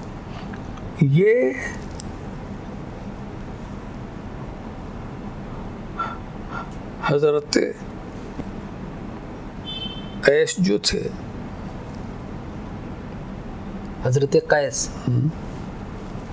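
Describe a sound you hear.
An elderly man speaks calmly through a microphone in short, spaced phrases.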